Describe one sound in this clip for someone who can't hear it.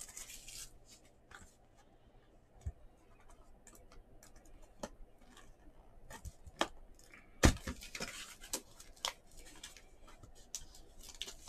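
Cardboard and plastic wrapping rustle and crinkle as a box is handled close by.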